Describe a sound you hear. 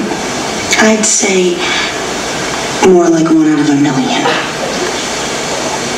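A woman speaks earnestly through a loudspeaker.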